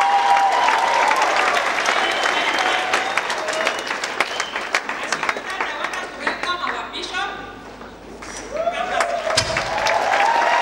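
People clap their hands.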